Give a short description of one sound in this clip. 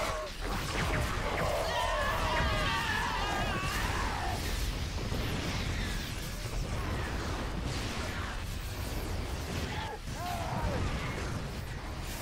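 Game weapons fire and explosions rattle in a dense battle.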